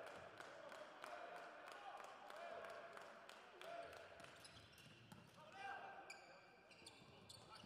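A volleyball is struck with hard slaps.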